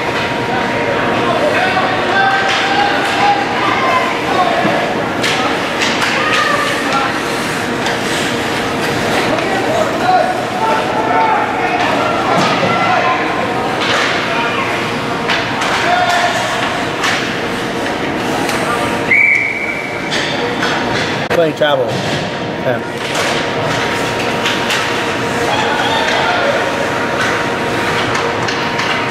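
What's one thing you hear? Spectators shout and cheer in an echoing rink.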